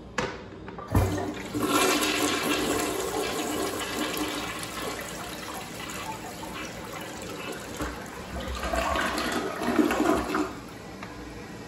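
A toilet flushes with a loud rush of swirling water.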